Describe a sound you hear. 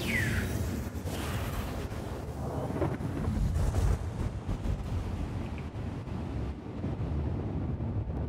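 A rushing whoosh builds as a spaceship leaps into hyperspace.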